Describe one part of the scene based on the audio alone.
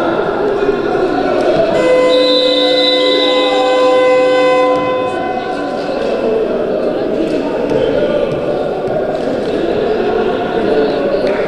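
A crowd murmurs and cheers in an echoing hall.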